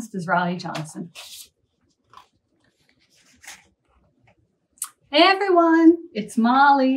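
A woman speaks clearly and warmly, close to a microphone, reading out.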